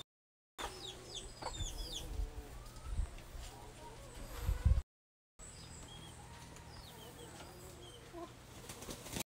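Chickens cluck softly nearby.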